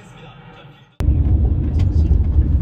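A car rumbles low while driving.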